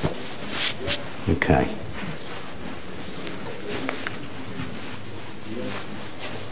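Fabric rustles as a jacket is adjusted.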